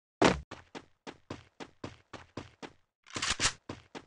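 Footsteps run rapidly on grass.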